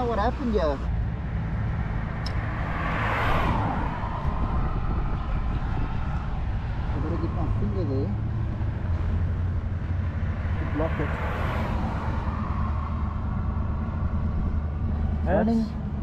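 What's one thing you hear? Wind blows and rumbles steadily outdoors.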